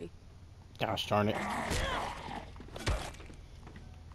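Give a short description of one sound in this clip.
A zombie growls and snarls up close.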